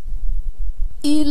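A young woman chants melodiously into a microphone.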